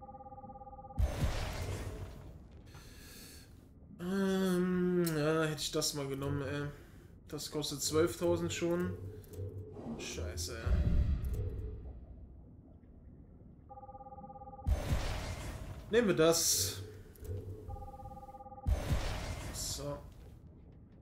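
Soft whooshing sounds sweep by as menu panels change.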